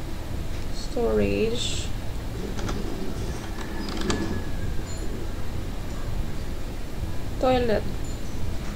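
A young woman speaks softly into a microphone, close by.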